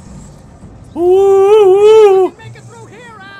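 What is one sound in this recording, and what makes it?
A young man cries out in a long, loud drawn-out yell.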